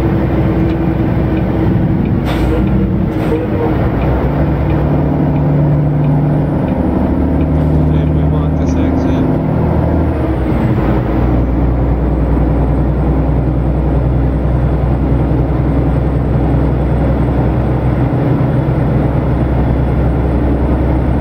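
Tyres rumble on a highway.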